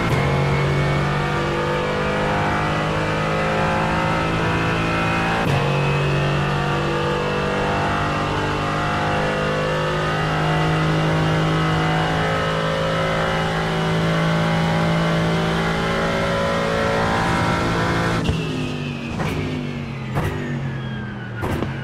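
A race car engine roars at high revs, rising steadily between gear changes.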